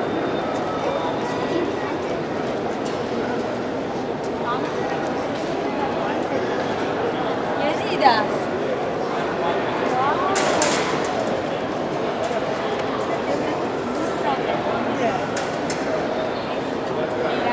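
Children's voices ring out nearby.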